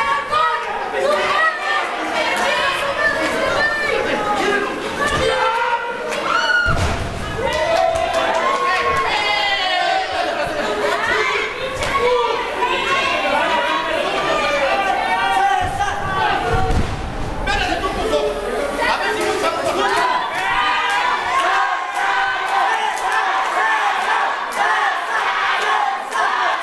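A crowd of men and women shouts and cheers.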